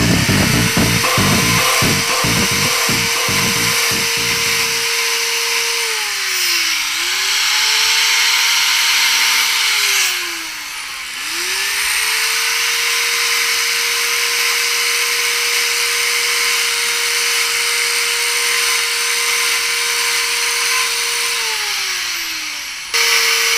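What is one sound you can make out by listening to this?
A chainsaw engine revs loudly close by, dropping and rising in pitch.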